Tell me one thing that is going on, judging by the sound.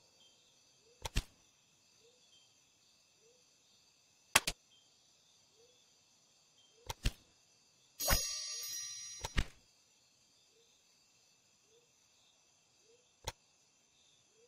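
Short sharp menu clicks sound now and then.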